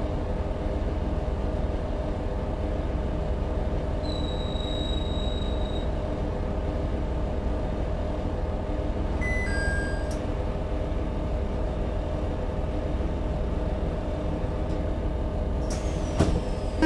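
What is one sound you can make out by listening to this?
A stopped electric train hums steadily.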